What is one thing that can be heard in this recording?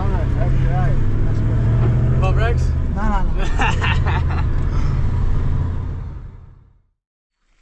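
A car engine rumbles low and steady from inside the vehicle.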